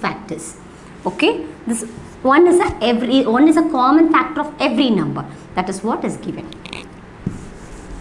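A woman speaks calmly and clearly, like a teacher explaining.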